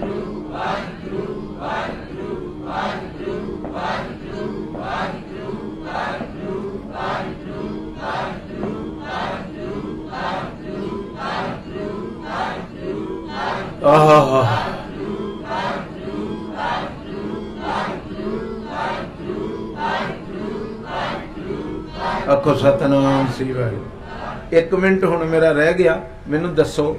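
An elderly man sings steadily into a microphone, heard through loudspeakers.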